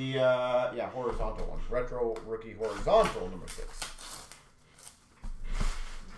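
A small cardboard box rustles and taps as it is handled.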